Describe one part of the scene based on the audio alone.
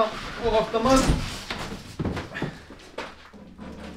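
A heavy machine thuds down onto a metal table.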